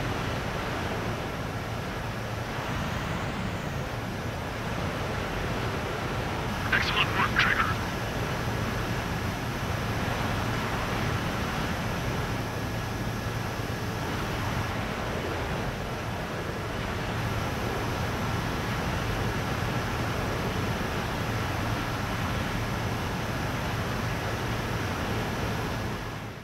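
Jet engines roar steadily.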